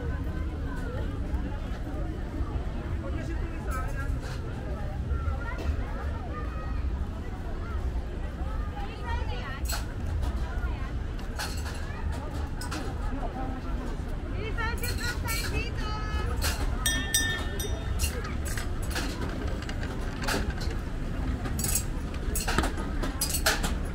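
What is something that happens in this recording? A crowd of men and women chatter outdoors in the background.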